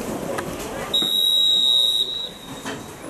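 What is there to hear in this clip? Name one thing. A referee's whistle blows one long blast.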